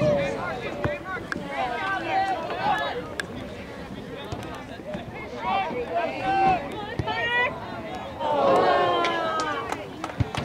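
Spectators nearby shout and cheer loudly outdoors.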